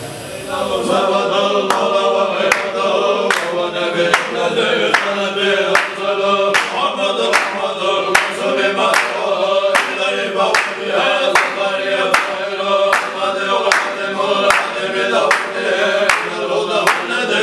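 A group of men chant together in a steady rhythm.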